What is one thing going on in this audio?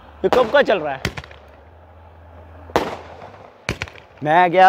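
Fireworks bang and crackle outdoors.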